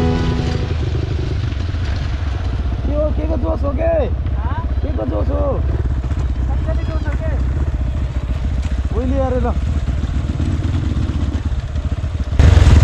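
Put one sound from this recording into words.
A motorbike engine rumbles steadily close by.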